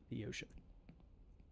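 A man makes a short, loud exclamation close to a microphone.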